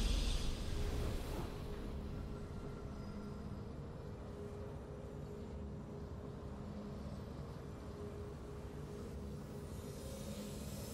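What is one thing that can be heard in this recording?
A soft triumphant tune plays quietly.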